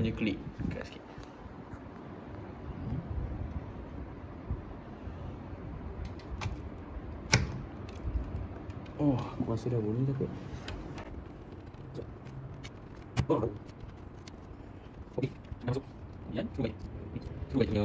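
A graphics card clicks and knocks as it is handled in a computer case.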